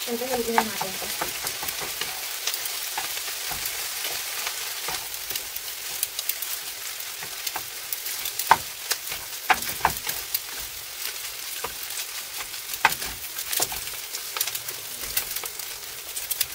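Wooden spatulas scrape and knock against a pan while stirring.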